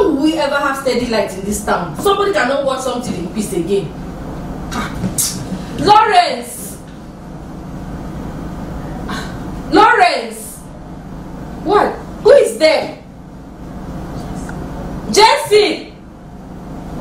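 A middle-aged woman talks loudly and with animation close by.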